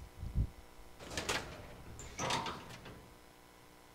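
A heavy metal door creaks open.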